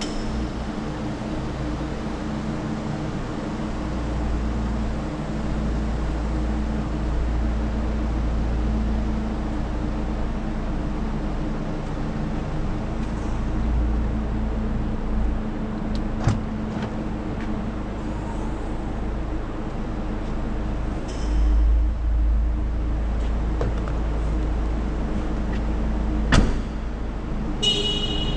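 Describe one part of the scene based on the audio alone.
A car engine idles steadily nearby.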